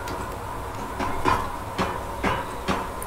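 Hands and boots knock on wooden ladder rungs in a steady climb.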